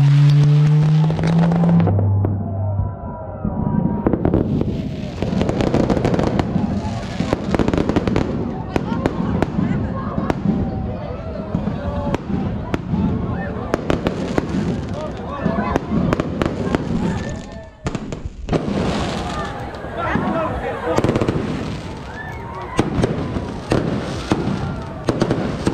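Rockets whistle as they shoot upward.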